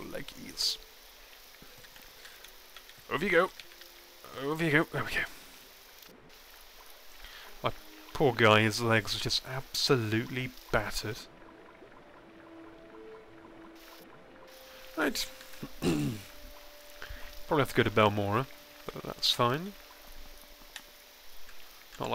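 Rain patters steadily on water.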